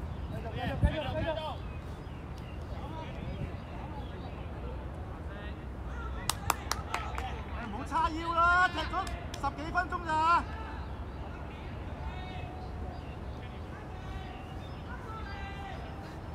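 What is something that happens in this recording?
Boys shout to each other across an open playing field.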